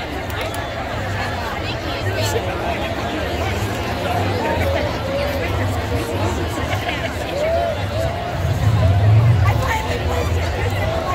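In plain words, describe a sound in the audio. A large crowd of men and women chatters outdoors.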